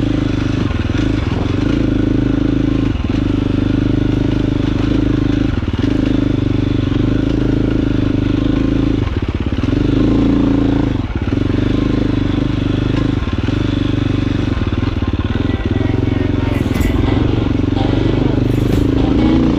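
Tyres crunch over rocks and dirt.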